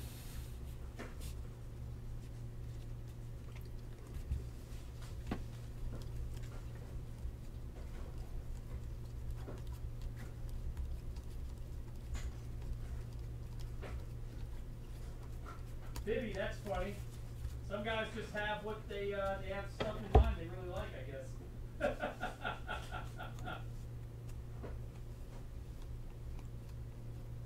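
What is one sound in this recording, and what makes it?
Trading cards rustle and slap softly as hands sort and flip through them.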